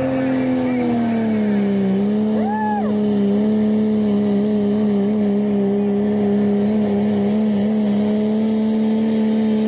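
A diesel truck engine roars loudly at full throttle, its pitch dipping slightly then holding steady.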